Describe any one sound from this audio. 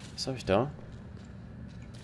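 Footsteps tap softly on a hard floor.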